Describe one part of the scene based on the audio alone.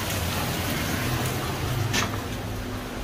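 Rain patters steadily on wet pavement outdoors.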